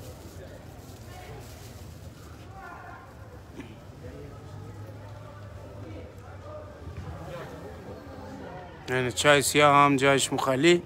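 A crowd of men chatters faintly in the distance, outdoors.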